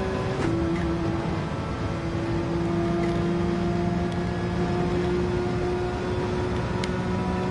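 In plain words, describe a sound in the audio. A racing car engine roars steadily at high speed, shifting gears.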